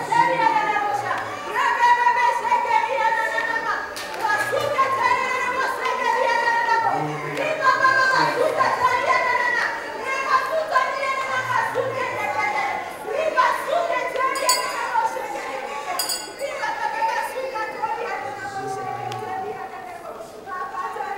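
A man sings loudly into a microphone, heard through loudspeakers.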